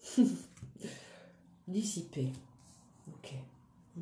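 A playing card is laid down on a cloth.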